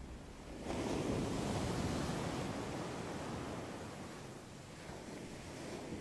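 Ocean waves crash and break, then wash in with a steady roar.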